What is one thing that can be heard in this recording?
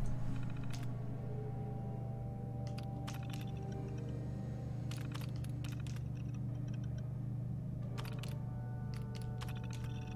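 Terminal keys click and beep in quick bursts.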